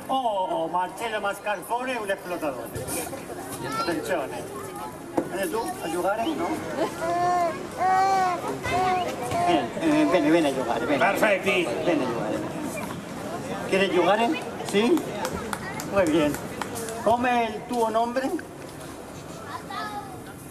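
A man speaks with animation through a loudspeaker outdoors.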